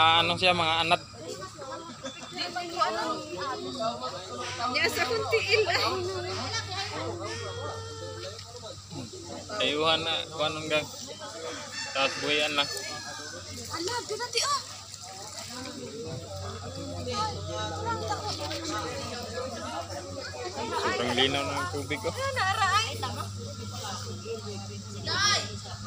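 Young girls chatter and shout excitedly nearby.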